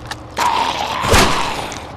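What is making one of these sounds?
A rifle shot cracks loudly.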